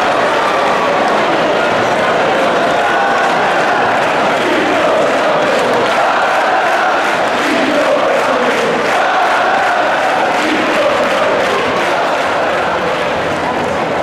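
A drum beats in a steady rhythm.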